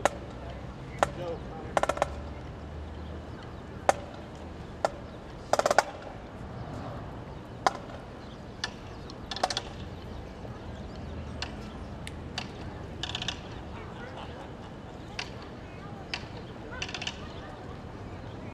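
Footsteps march on pavement outdoors.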